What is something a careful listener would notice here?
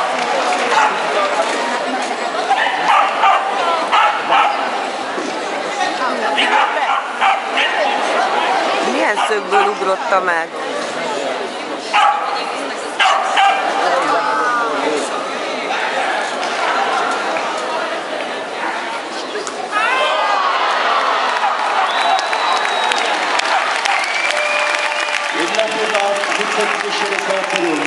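A dog barks excitedly.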